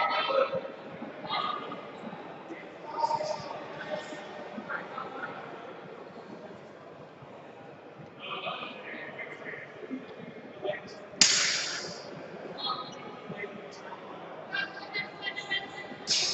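Many voices of men and women call and chatter across a large echoing hall.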